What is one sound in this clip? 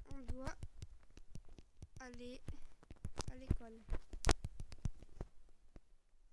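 Touchscreen keyboard taps click in quick bursts.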